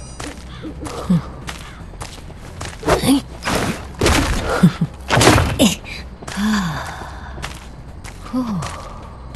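Footsteps run quickly over hard ground.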